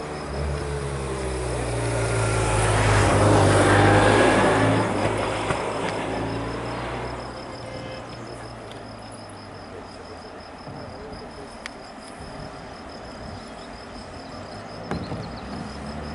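Bicycle tyres whir on the road as a pack of riders rolls past.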